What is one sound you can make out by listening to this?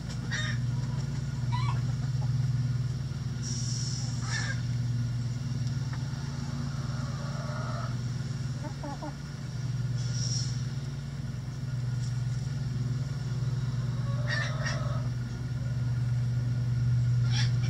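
Chickens cluck softly nearby.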